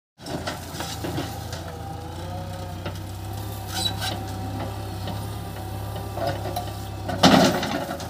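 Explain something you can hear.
A diesel backhoe loader engine runs under load.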